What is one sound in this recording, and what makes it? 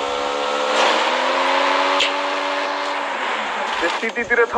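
A motorbike engine hums steadily, then fades.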